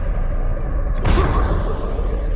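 A heavy body lands on stone with a thud.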